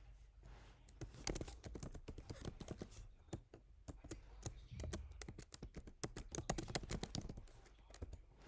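Keys clack quickly on a computer keyboard.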